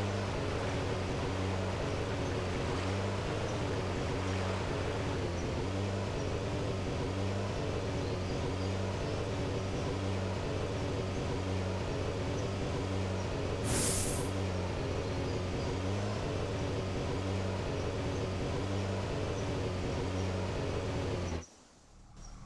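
A small engine hums steadily with a pulsing beat.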